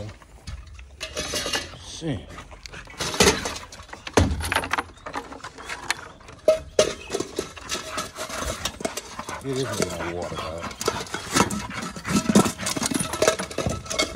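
A metal bowl clanks and scrapes on wooden boards and the ground.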